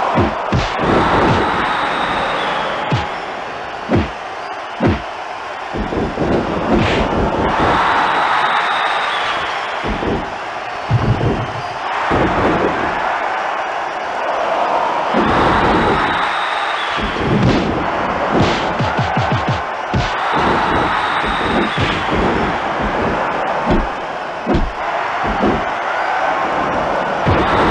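A large crowd cheers and roars steadily.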